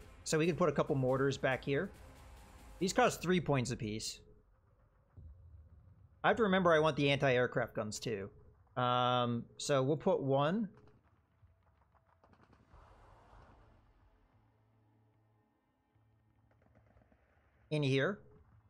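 A man talks with animation close to a microphone, with pauses.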